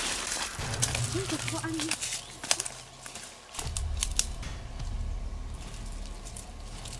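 Footsteps crunch and rustle through dry brush and leaves.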